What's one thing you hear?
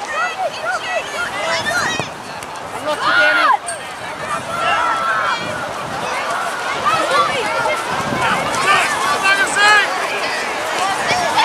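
Young women shout calls to each other across an open outdoor field.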